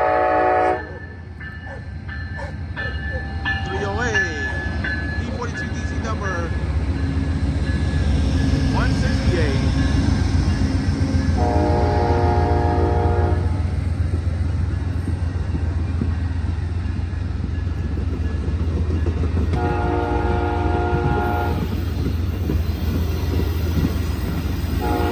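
A train horn blares in long loud blasts.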